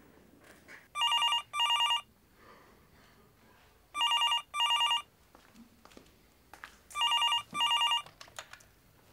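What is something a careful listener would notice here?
A telephone rings in bursts.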